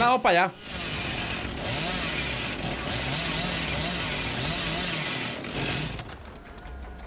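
A chainsaw engine revs loudly.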